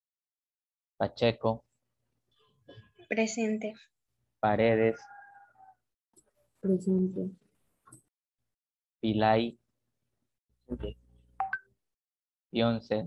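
A young person speaks in short bursts over an online call.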